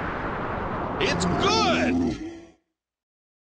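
A dinosaur lets out a wavering cry.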